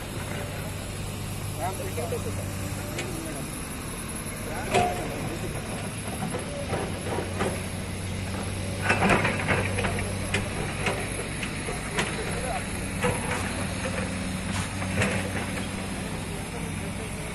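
Men talk with each other outdoors.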